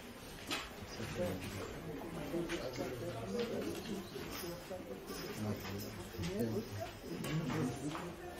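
Middle-aged women's voices sound.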